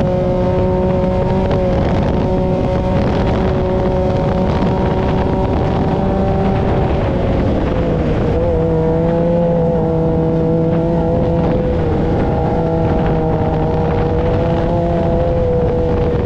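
A buggy engine roars steadily, its pitch dipping and rising as it shifts.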